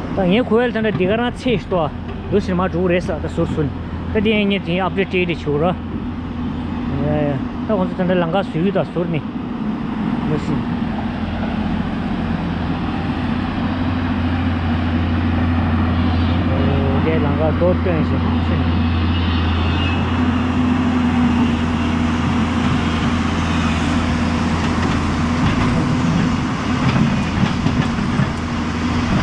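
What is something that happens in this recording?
A river rushes over stones.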